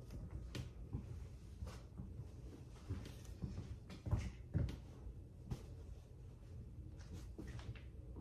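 Clothing rustles and brushes close by.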